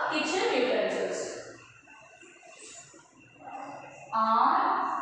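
A woman speaks clearly and slowly, as if teaching, close by.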